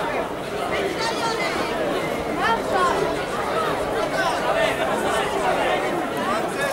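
A crowd of men and women chatters loudly outdoors.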